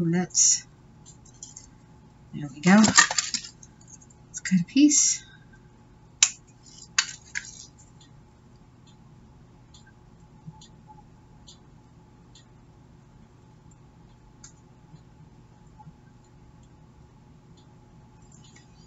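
Paper crinkles and rustles softly between fingers.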